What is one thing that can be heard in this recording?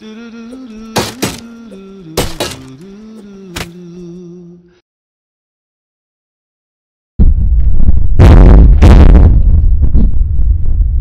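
A cleaver chops with heavy, sharp thuds.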